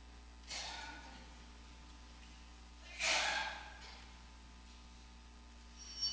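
A priest's footsteps sound softly on a wooden floor in a large echoing hall.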